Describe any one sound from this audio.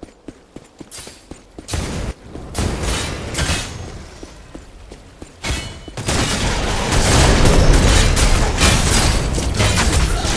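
Magic blasts and weapon strikes boom and crackle in a fight.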